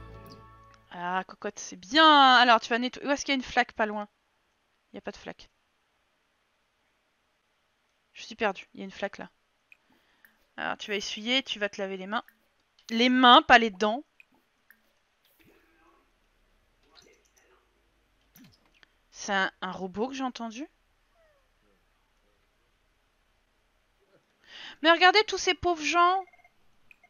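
A young woman talks with animation into a close microphone, in short bursts.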